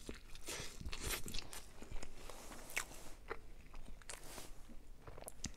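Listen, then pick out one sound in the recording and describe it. A young man chews food loudly close to the microphone.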